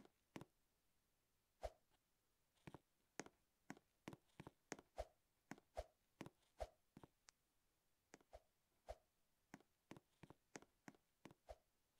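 A game character's footsteps tap on hard ground.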